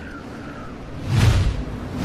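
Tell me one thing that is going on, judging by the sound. A vehicle whooshes past loudly.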